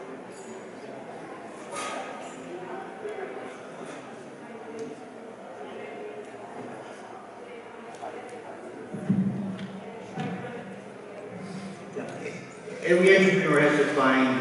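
A man speaks steadily through loudspeakers in a large echoing hall.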